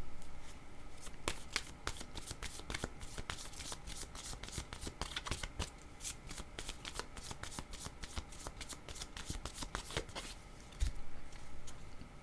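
Cards are shuffled by hand with rapid soft flicks.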